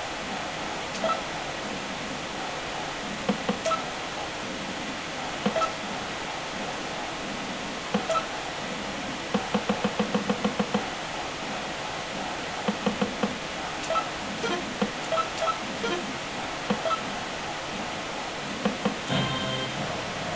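Short electronic menu beeps sound from a video game, sometimes in quick runs.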